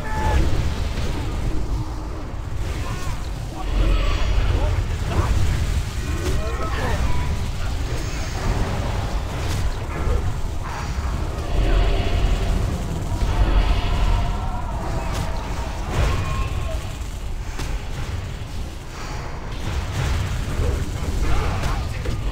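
Weapons clash and strike in a game fight.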